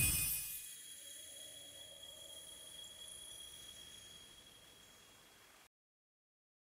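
A bright celebratory game chime sparkles and slowly fades.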